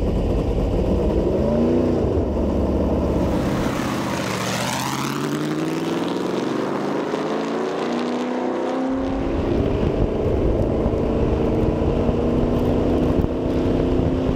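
A race car engine revs up and down as the car pulls away.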